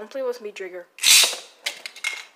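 A spinning top is launched with a sharp rip.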